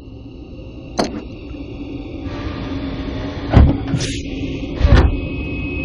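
A metal tray slides shut with a heavy clunk.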